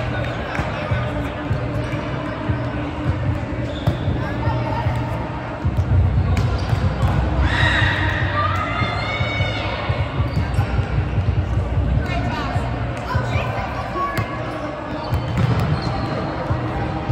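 Sneakers squeak on the hard court floor.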